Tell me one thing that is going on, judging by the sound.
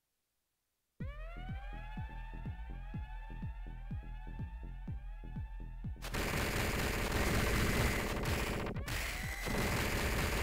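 Electronic video game music plays with quick repeating notes.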